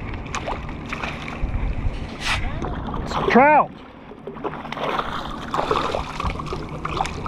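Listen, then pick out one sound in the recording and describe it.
Shallow water laps and splashes close by.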